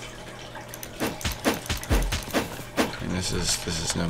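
A sword slashes in quick swishing blows.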